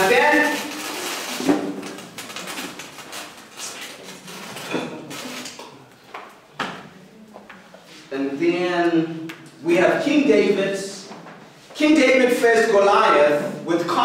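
A man speaks to a group, addressing them loudly and clearly.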